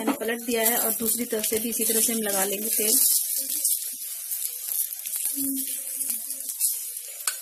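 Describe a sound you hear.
Batter sizzles on a hot pan.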